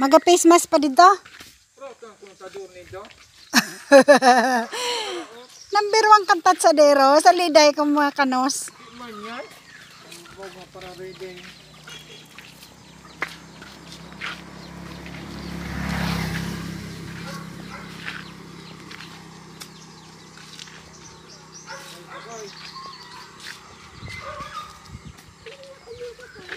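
Sandals scuff slowly on a paved road.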